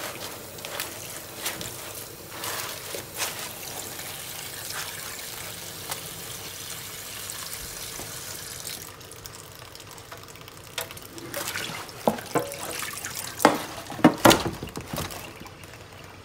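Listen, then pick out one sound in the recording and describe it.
Hands rub and splash a wet cloth in water.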